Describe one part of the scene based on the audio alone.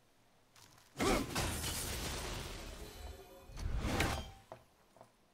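An axe whooshes through the air as it is thrown.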